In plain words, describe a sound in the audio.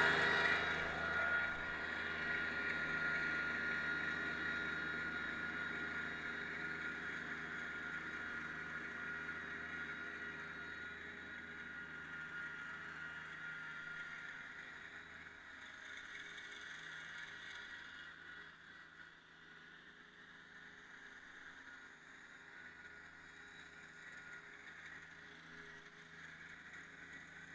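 A tractor engine hums steadily as the tractor drives away and slowly fades.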